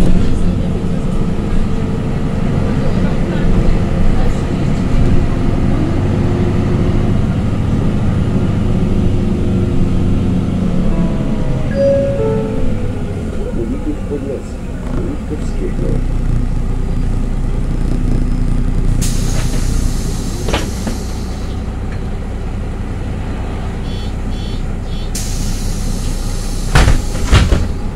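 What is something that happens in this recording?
An engine rumbles low and steady from inside a moving vehicle.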